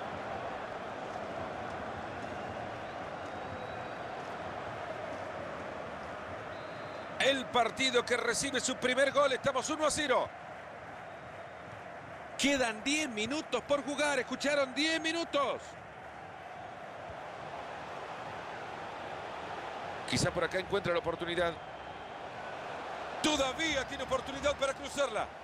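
A large stadium crowd roars and murmurs steadily.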